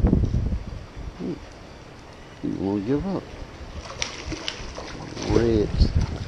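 A fish thrashes and splashes in the water.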